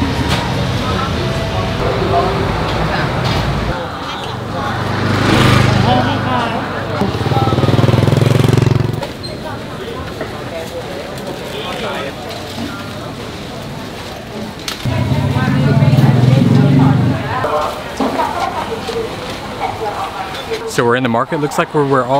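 Voices of a crowd murmur around.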